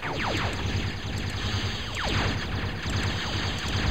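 Gunfire crackles in short bursts.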